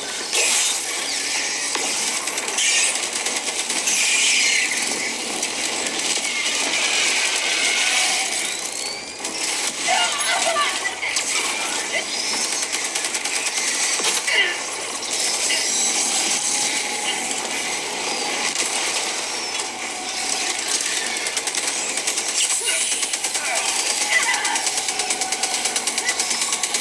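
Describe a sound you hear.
Game explosions and battle sounds play from a small speaker.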